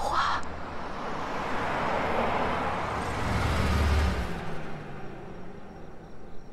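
A car engine rumbles as the car drives past.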